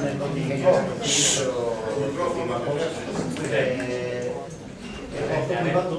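An elderly man speaks calmly into a microphone, heard over loudspeakers in a room with some echo.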